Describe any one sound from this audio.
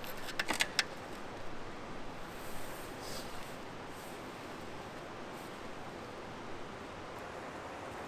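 Metal parts click and clank as a motorcycle is worked on.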